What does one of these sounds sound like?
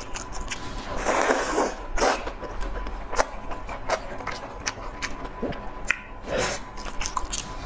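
A young woman chews and slurps food wetly, close to a microphone.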